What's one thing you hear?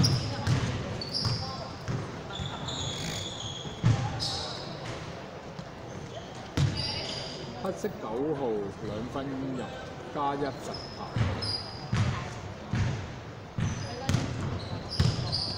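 Basketball players' shoes squeak on a hardwood court in a large echoing hall.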